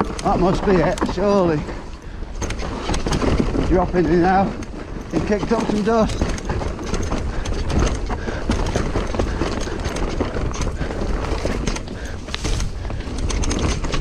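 A bicycle rattles and clatters over bumps.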